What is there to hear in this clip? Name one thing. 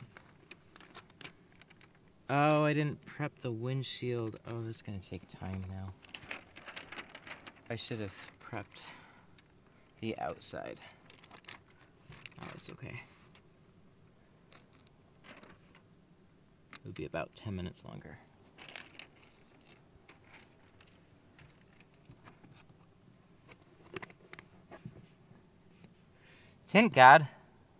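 Thin plastic film crinkles and rustles close by.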